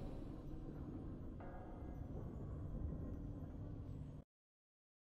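Triumphant game music plays with deep booming tones.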